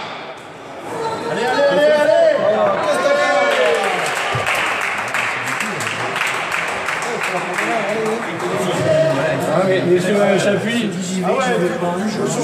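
Men talk and call out in an echoing hall.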